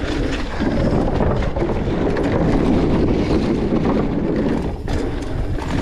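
Mountain bike tyres rattle over a wooden boardwalk.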